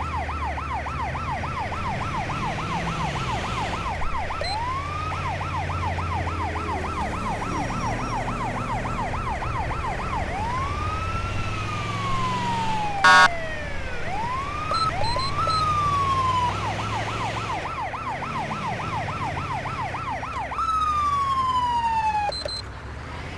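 An ambulance siren wails, switching between fast yelps and slow rising and falling wails.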